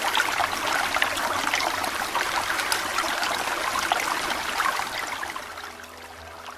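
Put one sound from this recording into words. Water rushes and roars through a weir, then grows softer and more distant.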